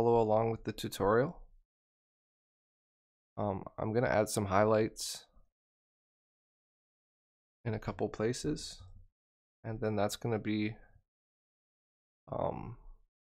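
A young man speaks with animation into a microphone, in short bursts with pauses.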